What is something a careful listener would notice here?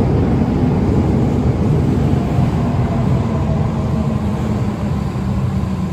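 Brakes squeal with a falling whine as a train slows.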